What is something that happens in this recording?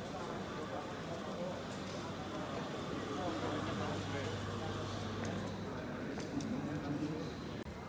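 Footsteps and rolling suitcases clatter on a hard floor.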